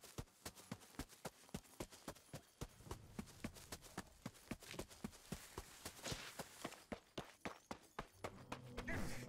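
Quick footsteps patter steadily over the ground.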